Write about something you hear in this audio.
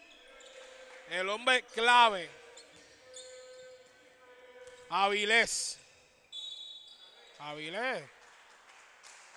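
Sneakers squeak sharply on a court in a large hall.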